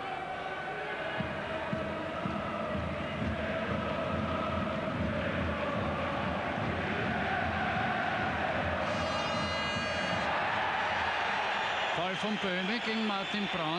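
A large stadium crowd chants and roars.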